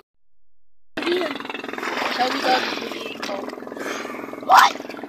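Water bubbles and rushes loudly close by, as if heard underwater.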